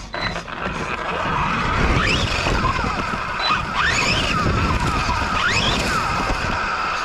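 Knobby tyres of a radio-controlled truck rumble over grass and dirt.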